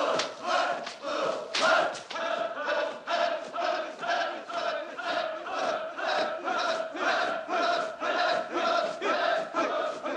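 A large group of men shout together in a steady rhythm.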